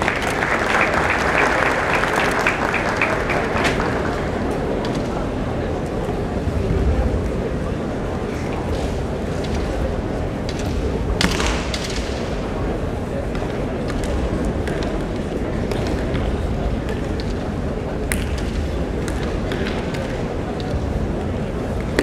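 A crowd murmurs steadily in the background.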